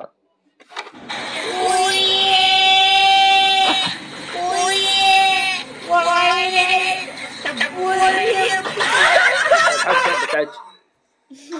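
An older man sings loudly in a strained, wailing voice.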